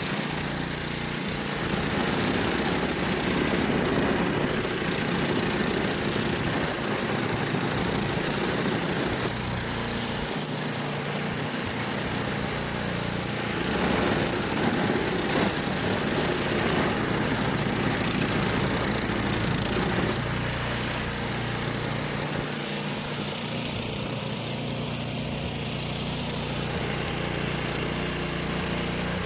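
A snowblower engine roars steadily close by.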